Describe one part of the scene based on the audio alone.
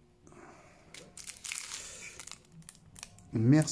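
Plastic wrappers crinkle.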